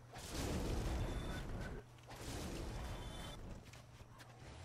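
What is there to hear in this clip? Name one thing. Flames roar and crackle in bursts.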